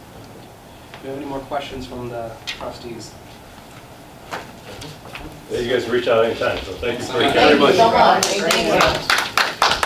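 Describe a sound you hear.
People in the room talk at once.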